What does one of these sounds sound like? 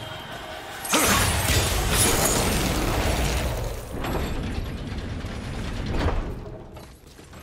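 A deep rumble swells and slowly fades.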